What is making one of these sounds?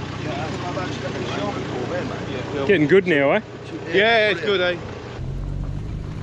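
Two men talk outdoors.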